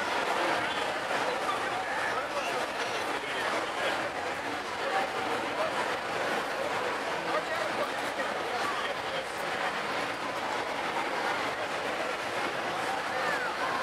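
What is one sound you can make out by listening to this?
Men talk with each other close by.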